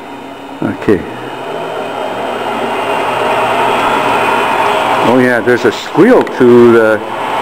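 A lathe motor starts up and whirs steadily, growing louder.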